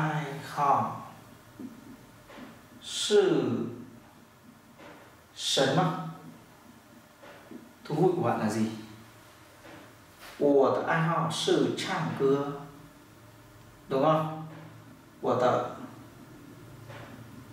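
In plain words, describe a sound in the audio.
A man speaks calmly and clearly in short phrases with pauses, close to the microphone.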